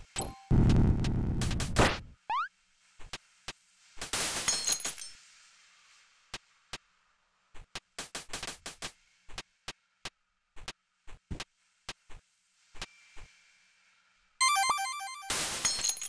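Short game sound effects of hits and steps click and thud.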